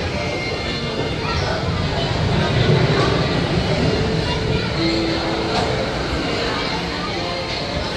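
A crowd of people chatters nearby.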